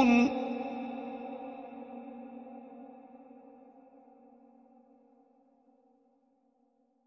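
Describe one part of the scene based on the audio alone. A man's chanting voice breaks off, leaving a long echo that slowly fades.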